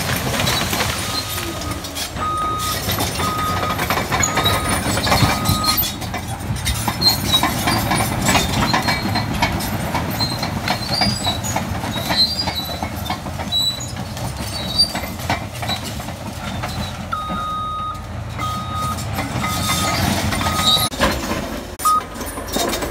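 A reversing alarm beeps in short, regular bursts.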